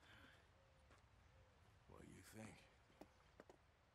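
An elderly man speaks gruffly.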